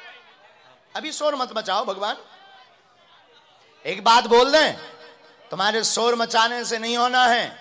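A man chants loudly in short bursts through a microphone.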